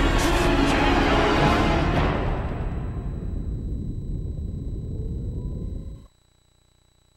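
A loud explosion roars and slowly fades away.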